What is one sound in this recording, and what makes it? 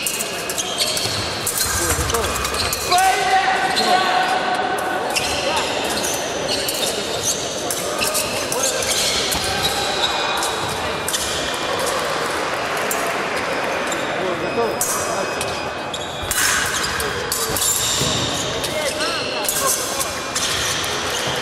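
Sport shoes squeak and thump on a hard floor.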